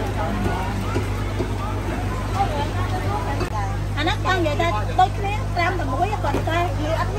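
A busy crowd chatters in the background.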